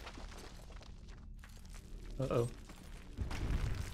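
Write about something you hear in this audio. A body lands on stone with a heavy thud.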